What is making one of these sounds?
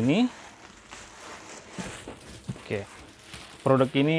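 A cardboard box slides and thumps on a table.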